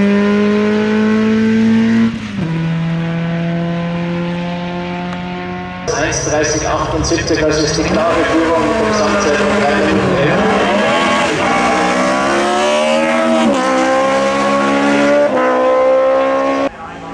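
A racing car engine roars loudly, shifting gears as it accelerates.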